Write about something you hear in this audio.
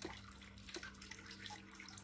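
Batter pours softly onto a hot plate.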